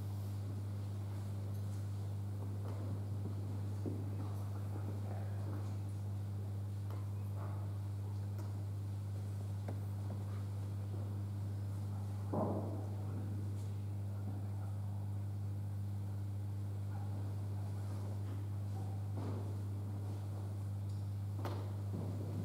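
A woman speaks softly and calmly, heard through a microphone in an echoing hall.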